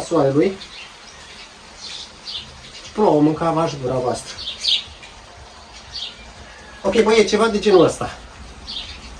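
A young man speaks with animation close by, outdoors.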